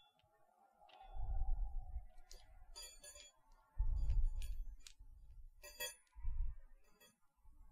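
Fingers tap and rustle against a microphone.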